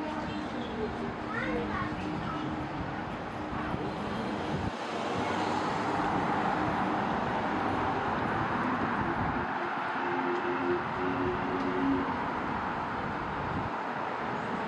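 City traffic hums steadily along a road nearby.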